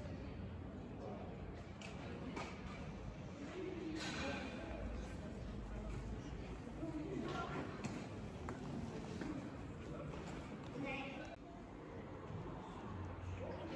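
People murmur faintly in the distance outdoors.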